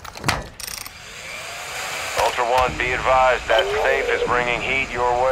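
A drill whirs and grinds against metal.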